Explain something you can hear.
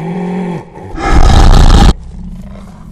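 A young man shouts loudly in fright.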